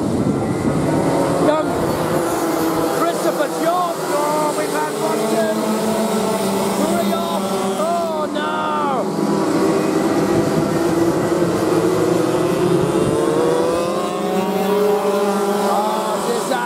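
Kart engines buzz and whine as they race past, rising and falling in pitch.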